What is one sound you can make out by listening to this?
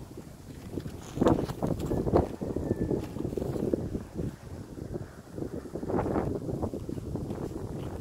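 Footsteps crunch on dry grass and stones.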